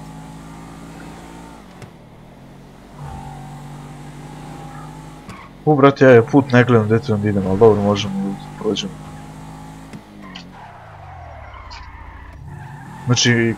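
A car engine revs up and down through the gears.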